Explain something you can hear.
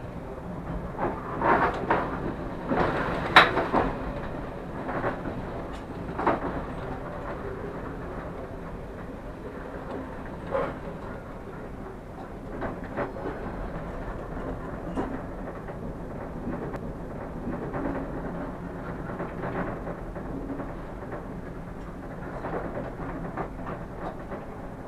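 Train wheels clack and knock over rail joints.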